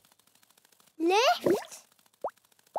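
A bird-like voice chirps high and brightly.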